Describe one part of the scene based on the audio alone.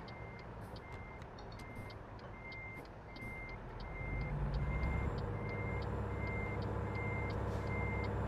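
A truck engine rumbles and grows louder as it pulls away.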